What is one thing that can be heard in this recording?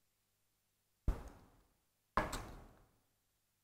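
Small plastic and wooden parts knock and click as hands handle them.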